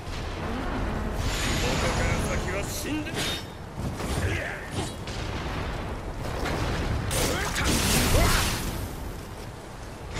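Steel swords clash and strike.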